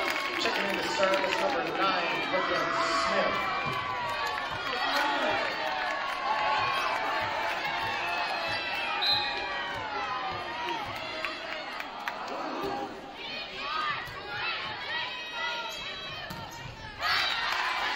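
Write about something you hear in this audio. Young women players shout and call to each other on the court.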